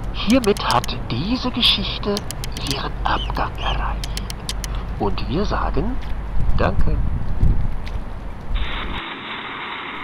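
Water laps gently against a stone shore.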